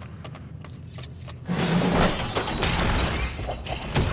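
A bright jingle plays as an item is collected.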